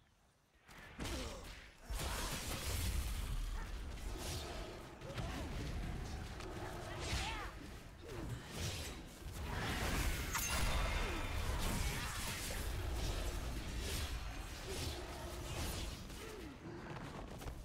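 Weapon strikes and magic blasts crash rapidly in a fight.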